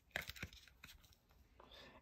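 Stiff board book pages flip with soft taps.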